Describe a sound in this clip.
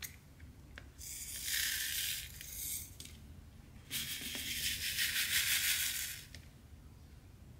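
Tiny plastic beads rattle and pour into a tray.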